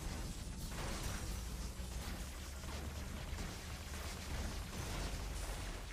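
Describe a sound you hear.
An energy weapon fires in a steady buzzing stream.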